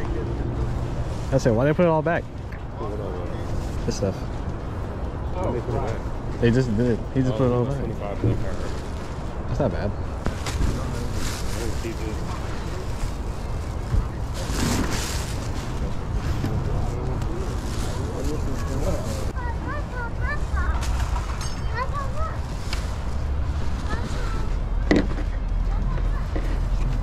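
Fabric rustles as jackets are handled.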